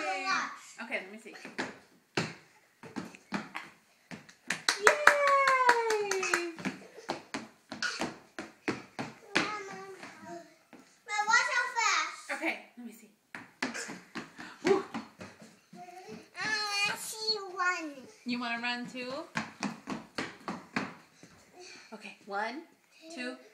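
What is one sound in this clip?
A young girl sings and talks excitedly close by.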